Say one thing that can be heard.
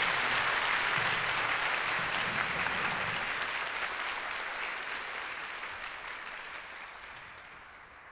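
A large audience applauds and cheers in a big hall, slowly fading away.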